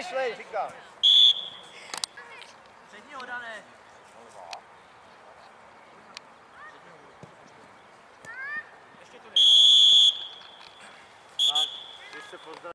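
A referee's whistle blows in short sharp blasts.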